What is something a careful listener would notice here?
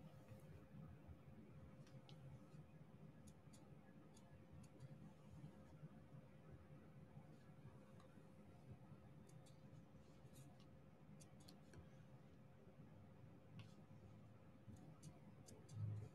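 Small plastic beads click softly as they are pressed into place.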